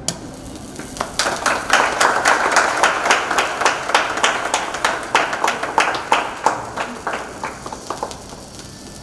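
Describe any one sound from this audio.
A group of people clap their hands in lively applause.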